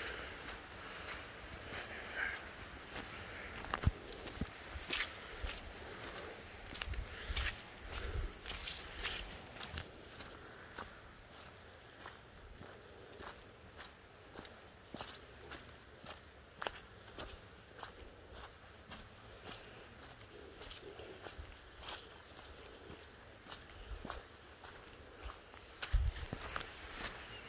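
Footsteps crunch softly on leaves and twigs along a forest path.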